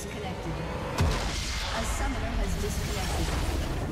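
A large crystal shatters in a loud, booming explosion.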